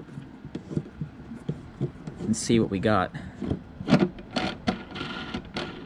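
A plastic tool clicks and taps against a car's metal body panel.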